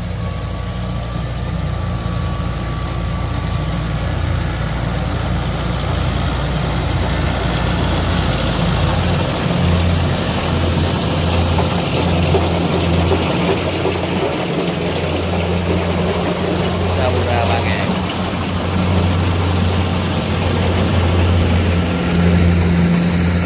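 A tractor engine chugs loudly close by.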